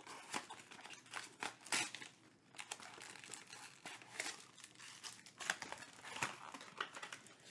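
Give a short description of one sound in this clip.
Cardboard rustles and scrapes as hands open a box.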